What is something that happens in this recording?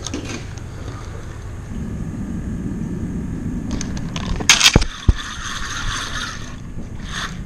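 A fishing reel clicks as its handle is wound.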